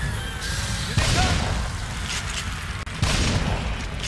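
A gun fires loudly.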